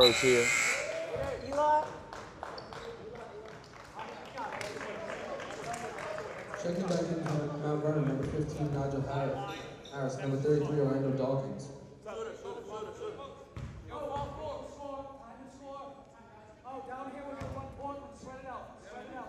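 A small crowd of spectators chatters and cheers.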